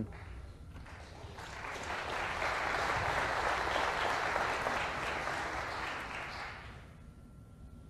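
An audience applauds loudly, then the applause fades.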